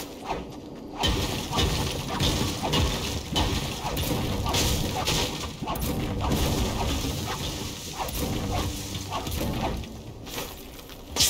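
A pickaxe strikes rock again and again with sharp knocks.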